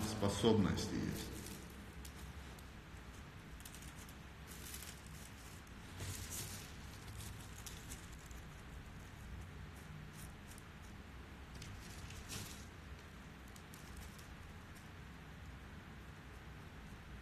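A puffy jacket rustles as a man moves his hand.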